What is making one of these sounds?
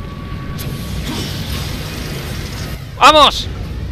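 A magical portal hums and whooshes.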